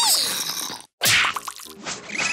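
A hammer slams down with a heavy thud.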